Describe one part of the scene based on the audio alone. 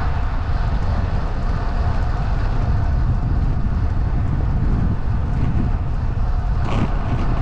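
Wind rumbles and buffets against a moving microphone outdoors.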